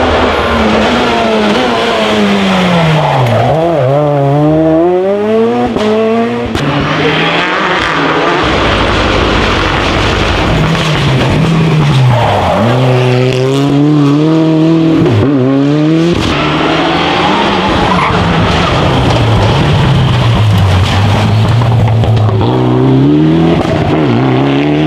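A rally car engine roars loudly, revving up and down as cars speed past one after another.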